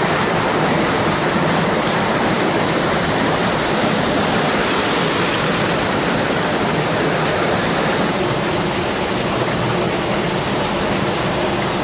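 Water rushes and splashes steadily over rocks close by.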